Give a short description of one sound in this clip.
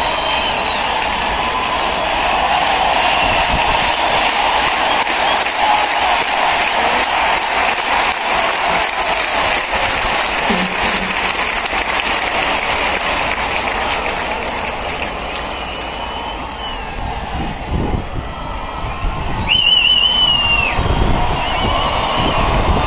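A huge stadium crowd cheers and sings loudly in a vast open space.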